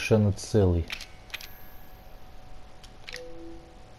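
Soft menu clicks and beeps sound as items are selected.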